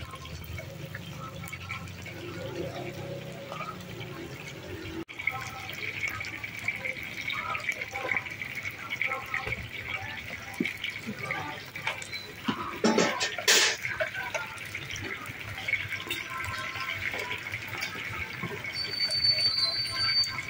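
Metal tongs scrape and clink against a wok.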